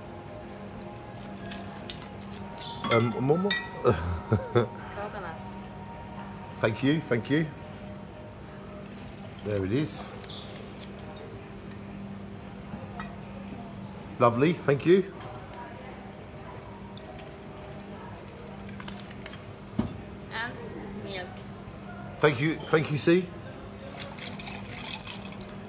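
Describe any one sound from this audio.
Liquid pours into a metal shaker.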